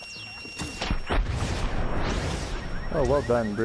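An explosion booms with a fiery roar.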